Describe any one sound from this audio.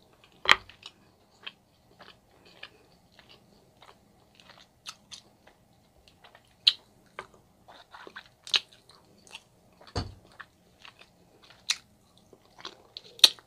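A woman chews food wetly close to a microphone.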